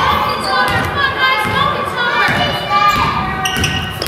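Young players shout to each other in an echoing gym.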